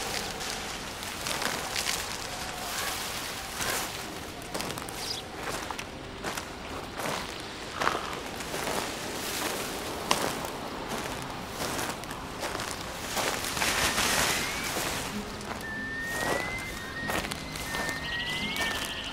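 Footsteps crunch steadily over forest ground.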